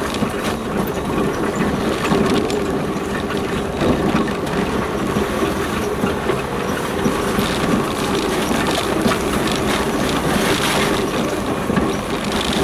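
A vehicle engine hums steadily while driving.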